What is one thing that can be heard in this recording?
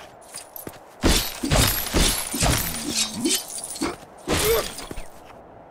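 Leafy plants crunch and burst apart as they are smashed.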